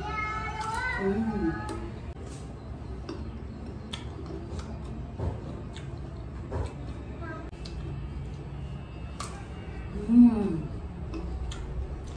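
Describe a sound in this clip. Crisp raw mango crunches between teeth.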